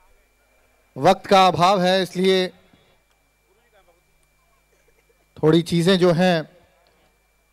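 A man shouts slogans through a loudspeaker outdoors, in two short bursts.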